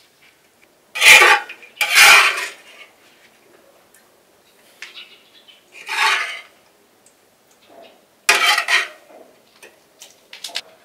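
A metal spatula scrapes in a metal wok.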